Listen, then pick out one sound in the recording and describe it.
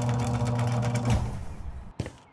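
A garage door shuts with a heavy clunk.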